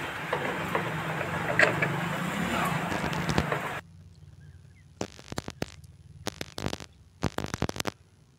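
Metal parts knock and click.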